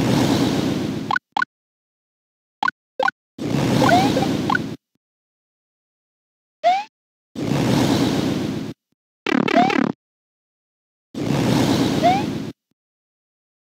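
Game fireballs whoosh in bursts.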